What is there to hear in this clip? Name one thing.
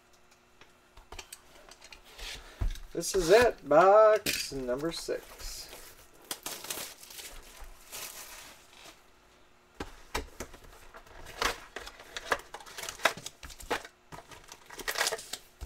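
Hands slide and tap cardboard boxes on a table.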